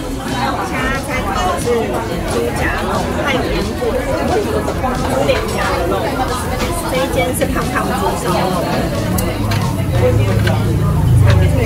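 Meat sizzles on a hot grill.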